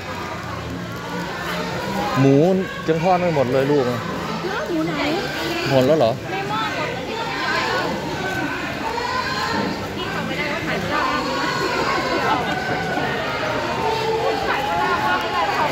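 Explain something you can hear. A crowd of men and women chatter all around.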